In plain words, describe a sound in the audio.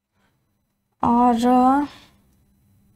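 A young woman speaks briefly and with animation, close to a microphone.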